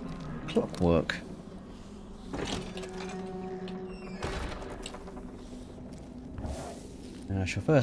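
Footsteps creak across a wooden floor.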